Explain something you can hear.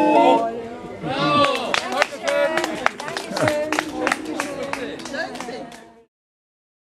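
An elderly man sings loudly with animation.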